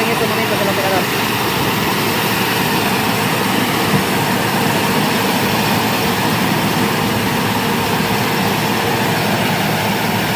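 A harvester engine roars steadily close by.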